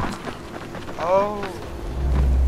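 A creature lets out a short rising and falling shriek.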